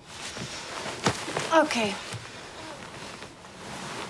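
Bedding rustles as a young woman sits up quickly.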